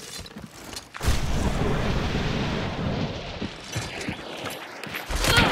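Fire roars and crackles close by.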